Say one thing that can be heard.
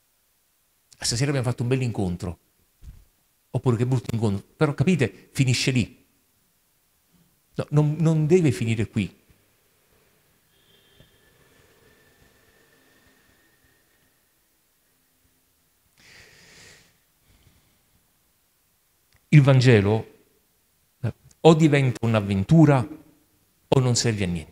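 A man speaks through a microphone in short bursts, with long pauses.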